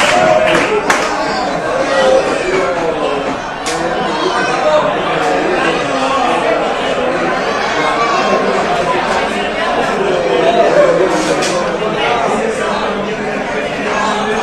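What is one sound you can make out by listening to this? A crowd of people cheers and chatters noisily.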